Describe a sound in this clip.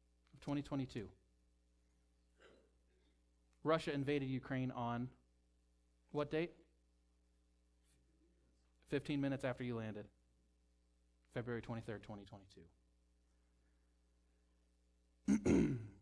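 A young man speaks calmly into a microphone with pauses, heard through a loudspeaker in a hall.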